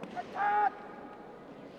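A man shouts a short, drawn-out battle cry in a large echoing hall.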